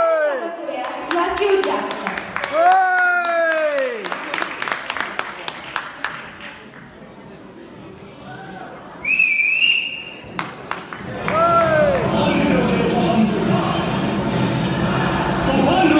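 A young girl sings through a loudspeaker in an echoing hall.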